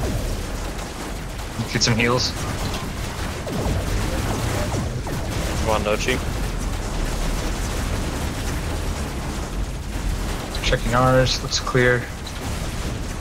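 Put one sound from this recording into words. Laser guns fire in a steady buzzing stream.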